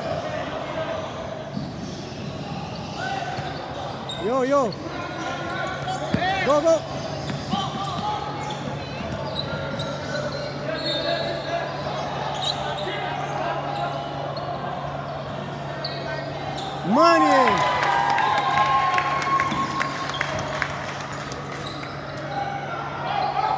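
Young players call out to each other in an echoing hall.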